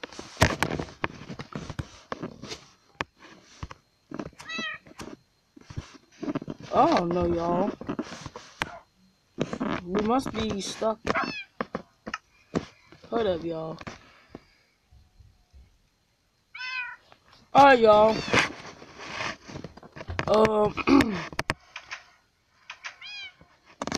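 A child talks with animation close to a microphone.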